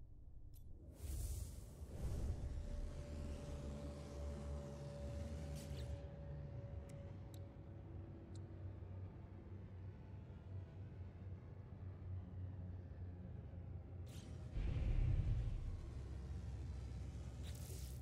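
A spaceship engine roars and hums low.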